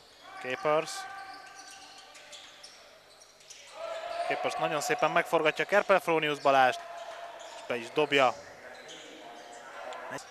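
A basketball bounces on the court as it is dribbled.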